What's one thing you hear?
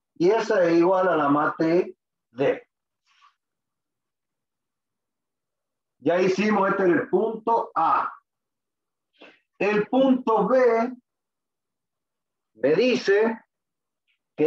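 An older man speaks calmly and clearly into a close microphone, in short phrases with pauses.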